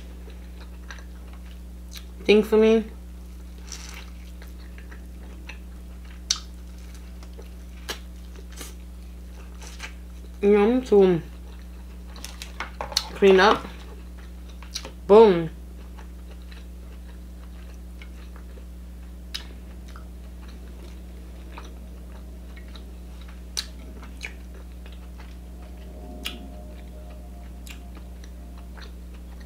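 A woman chews and smacks her lips close to the microphone.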